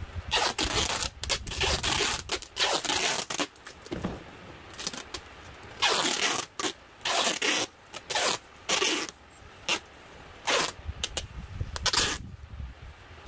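Packing tape screeches loudly as it is pulled off a roll.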